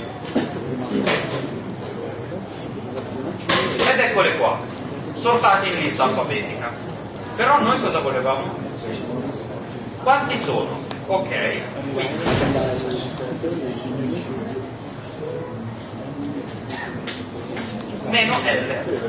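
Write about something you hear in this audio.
A young man talks calmly into a microphone in a large echoing room.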